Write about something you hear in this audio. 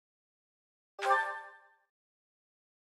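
A bright chime rings once and fades.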